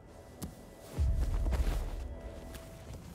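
A heavy body thuds onto a hard floor.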